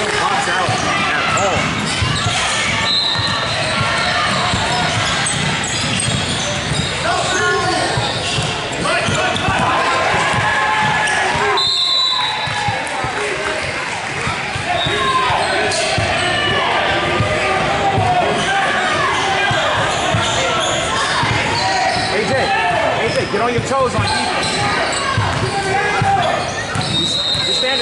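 A crowd of spectators chatters throughout, echoing in a large hall.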